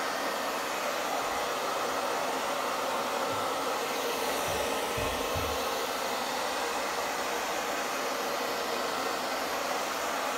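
A heat gun blows with a steady whirring roar.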